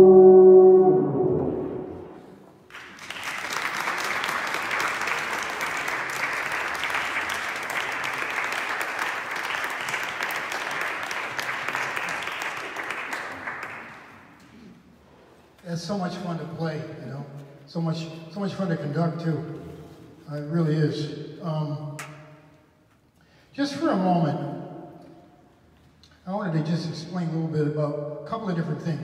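A brass ensemble plays in short, swelling phrases in an echoing hall.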